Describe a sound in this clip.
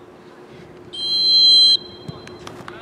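A referee's whistle blows loudly once.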